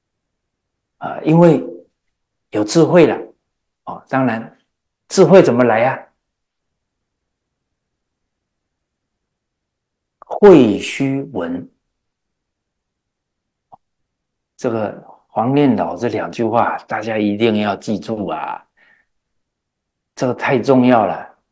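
A middle-aged man speaks calmly and with animation into a close microphone, in bursts with pauses.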